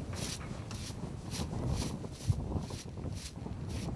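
A broom sweeps across dry, gritty ground in quick strokes.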